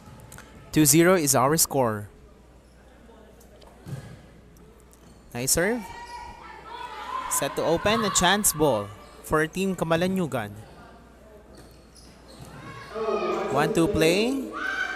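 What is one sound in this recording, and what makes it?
A volleyball is struck with sharp slaps in a large hall.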